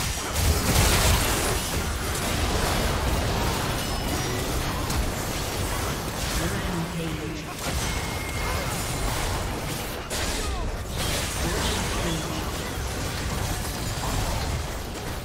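Magic spells crackle and burst in a busy video game battle.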